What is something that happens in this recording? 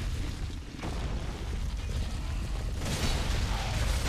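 A sword clangs against an enemy.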